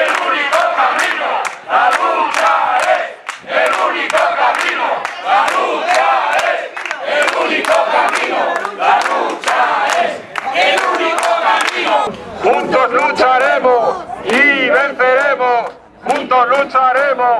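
A man shouts loudly through a megaphone.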